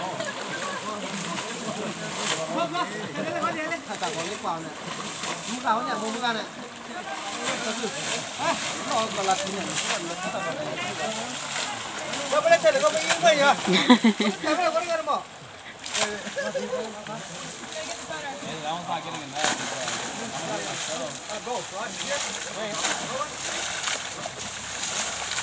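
Several adults talk and laugh close by outdoors.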